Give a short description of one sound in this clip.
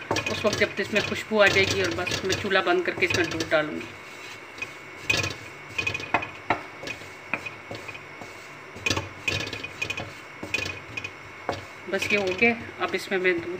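A wooden spatula stirs and scrapes in a metal pan.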